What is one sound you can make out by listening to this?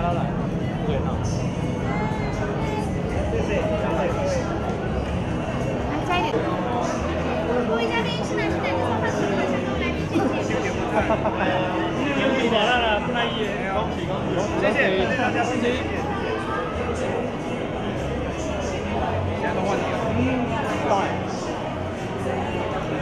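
A crowd of men and women chatters loudly all around in a large, busy hall.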